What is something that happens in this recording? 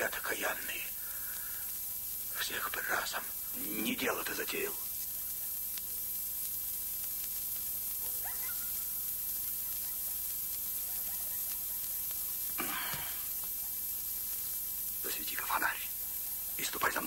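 A man speaks quietly and tensely, close by, in short bursts.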